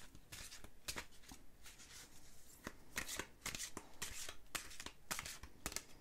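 Cards flick and rustle as they are shuffled by hand.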